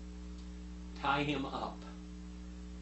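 An elderly man speaks calmly into a nearby microphone.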